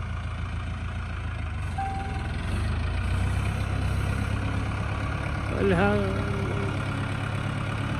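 A harrow scrapes through loose soil.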